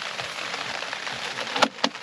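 A case is set down with a thud.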